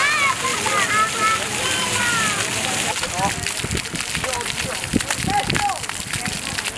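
Young children shout and squeal.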